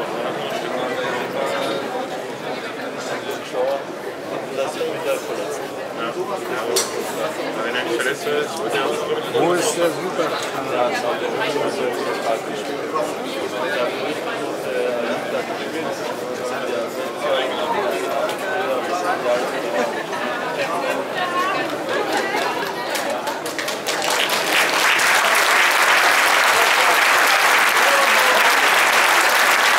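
Several men chat and call out to one another outdoors.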